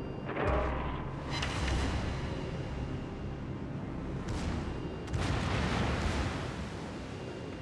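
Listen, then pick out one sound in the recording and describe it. Shells splash into the sea with a roar of water.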